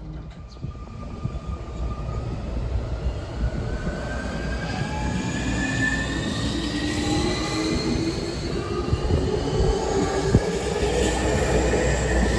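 An electric train pulls away, its motors whining steadily higher as it speeds up.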